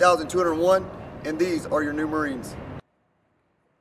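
A man speaks firmly and clearly, close by.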